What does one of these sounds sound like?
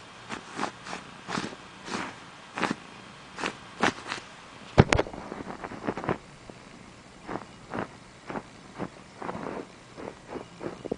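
A cat purrs close by.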